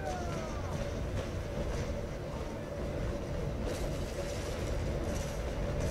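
A sailing warship's cannons fire a broadside in booming blasts.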